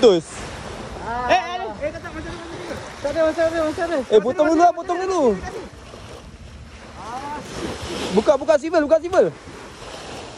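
Young men shout excitedly outdoors.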